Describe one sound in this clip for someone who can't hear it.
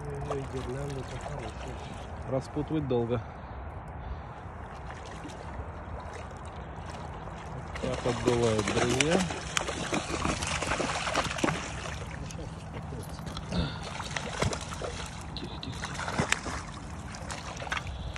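A fish thrashes and splashes loudly at the water's surface.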